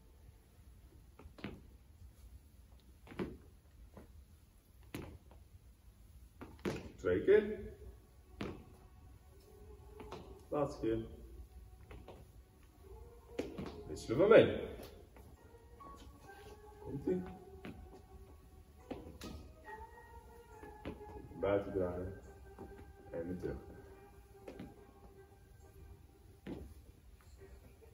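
Shoes tap lightly on a hard floor as people step in place.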